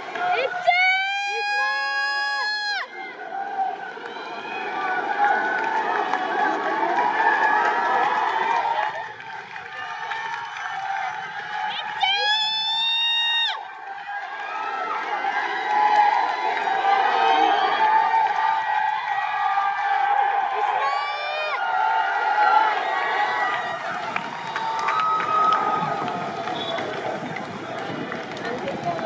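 A crowd chatters and cheers loudly outdoors.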